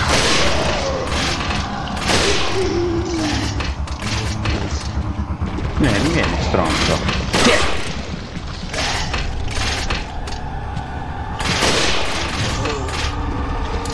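A rifle fires loud single shots that echo.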